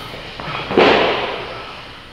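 A heavy weight plate thuds onto the floor.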